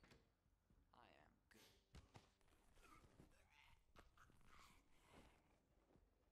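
Bodies scuffle and thud on the floor.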